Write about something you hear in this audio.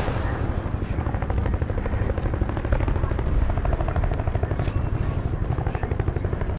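A helicopter's rotor thuds rapidly.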